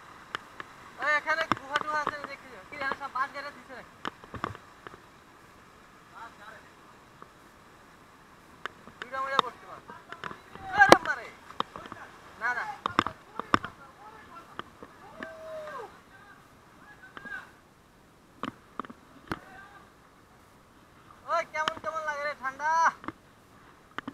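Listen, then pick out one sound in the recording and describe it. Young men talk and call out to one another outdoors.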